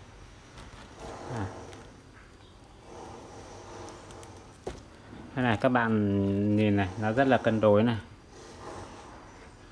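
Thin plastic sheeting rustles and crinkles as it is handled.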